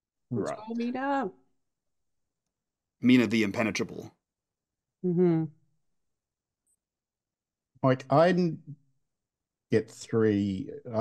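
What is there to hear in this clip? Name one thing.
Several men talk casually over an online call, in short bursts with pauses between.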